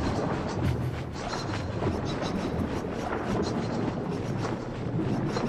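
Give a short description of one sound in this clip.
Water swooshes and bubbles as a swimmer strokes underwater.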